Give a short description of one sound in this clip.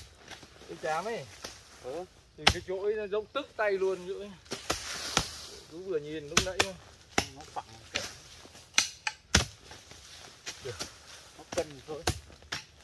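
Hoes strike and scrape the dry earth again and again.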